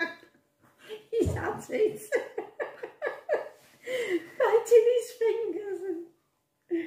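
An elderly woman laughs.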